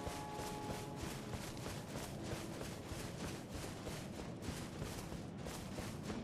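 Footsteps crunch quickly over dry grass and stones.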